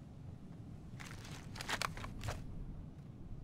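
A rifle clicks and clatters as it is handled.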